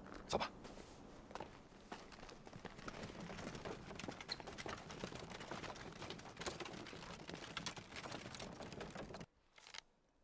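Wooden cart wheels rattle and creak.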